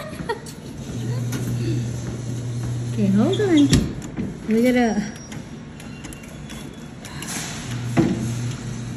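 A claw machine's motor whirs.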